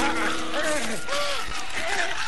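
A woman screams loudly in terror.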